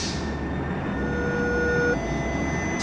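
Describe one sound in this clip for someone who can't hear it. A train horn sounds.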